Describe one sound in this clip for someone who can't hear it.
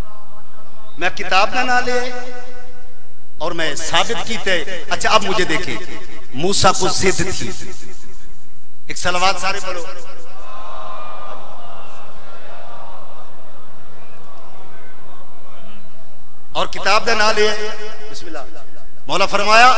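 A man chants loudly and emotionally through a microphone, in bursts with pauses.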